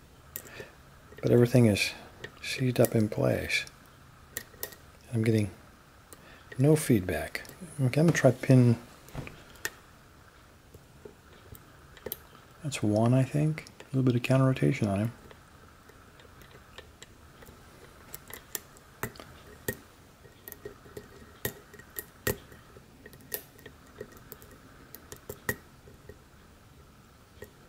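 A metal lock pick clicks against the pins inside a pin tumbler lock cylinder.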